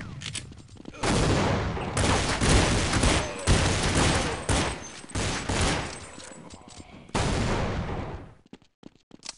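Pistol shots crack in rapid bursts.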